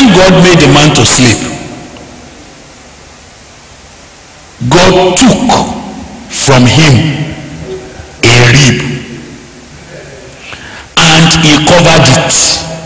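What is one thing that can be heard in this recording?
A man preaches forcefully into a microphone, in bursts with pauses between them.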